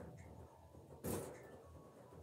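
A plastic bowl thumps onto a boy's head.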